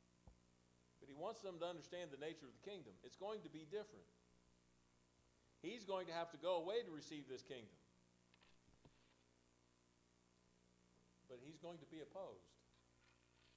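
An elderly man speaks slowly and calmly through a microphone in a large room.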